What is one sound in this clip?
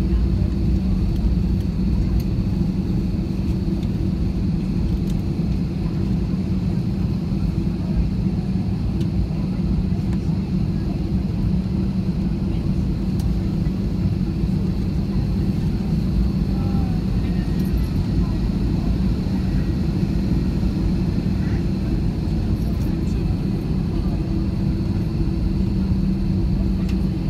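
Jet engines hum and roar steadily, heard from inside an aircraft cabin.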